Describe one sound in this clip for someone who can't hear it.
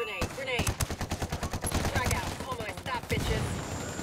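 Rapid gunshots ring out in quick bursts.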